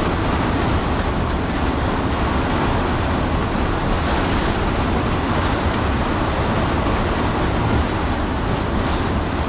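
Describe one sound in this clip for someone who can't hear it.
A bus engine hums steadily as the bus drives.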